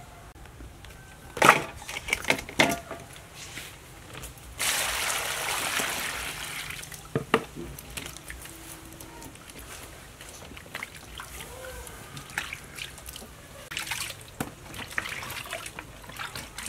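Water splashes and pours into a metal bowl.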